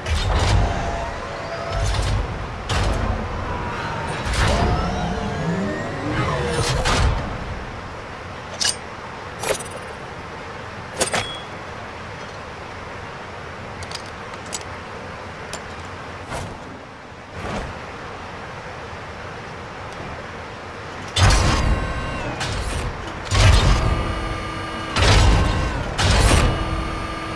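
A heavy mechanical platform whirs and clanks as it turns.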